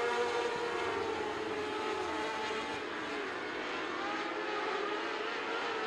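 Many racing engines roar and whine loudly as cars speed around a dirt track.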